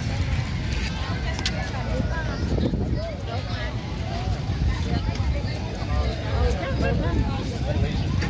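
A crowd of adults and children talk in the distance.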